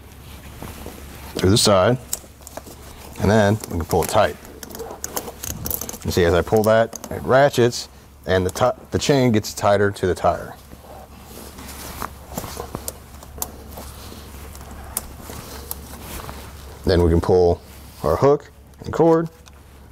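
Metal chain links clink and rattle.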